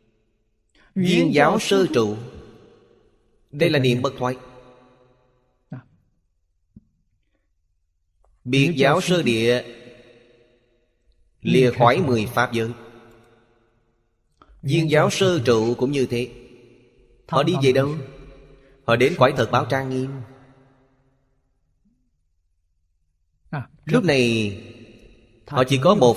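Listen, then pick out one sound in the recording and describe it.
An elderly man speaks calmly and slowly into a close microphone, in short phrases with pauses.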